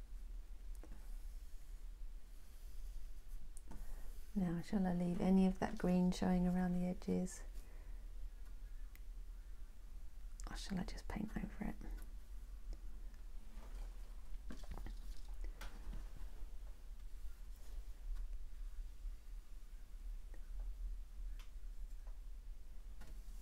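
A brush scrapes softly across a canvas.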